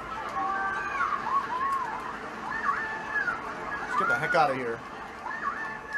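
Upbeat video game music plays through a television speaker.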